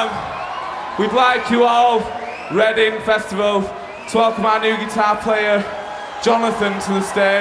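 A man shouts into a microphone over loudspeakers.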